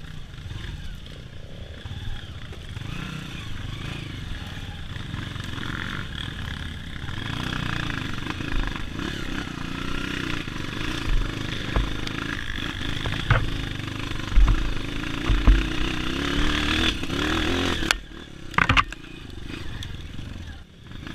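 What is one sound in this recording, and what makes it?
A dirt bike engine revs and putters up close.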